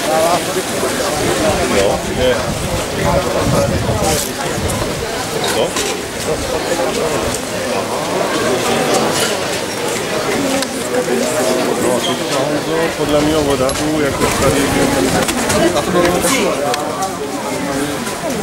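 A crowd of men, women and children chatters loudly all around outdoors.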